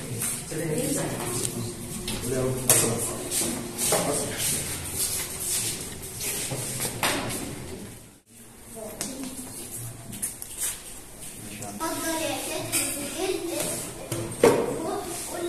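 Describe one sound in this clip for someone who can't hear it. Children chatter and call out in a busy room.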